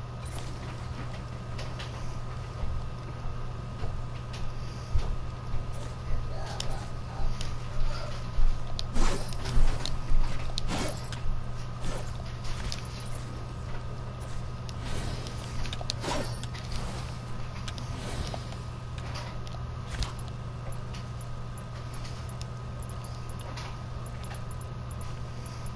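Building pieces snap into place with quick clacks in a video game.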